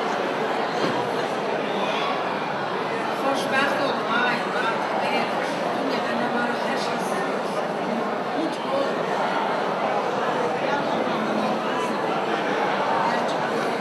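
An elderly woman sings into a microphone over a loudspeaker, echoing in a large hall.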